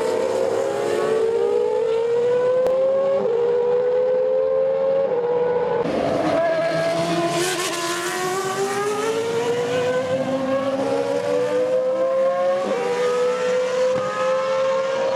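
A racing car engine screams loudly, rising in pitch and dropping sharply at each gear change.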